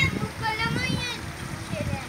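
Water trickles gently over rocks into a pond.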